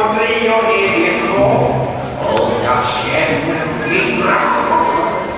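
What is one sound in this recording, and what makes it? Many children chatter and shout in a large echoing hall.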